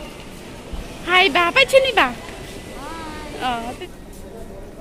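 A young woman speaks excitedly close by.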